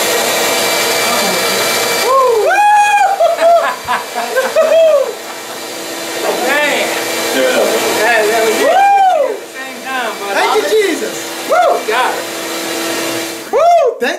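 A vacuum hums steadily.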